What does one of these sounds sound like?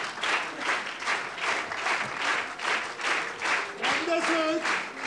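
A woman laughs loudly nearby.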